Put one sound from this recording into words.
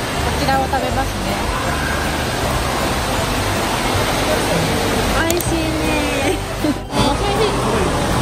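A young woman speaks animatedly close by.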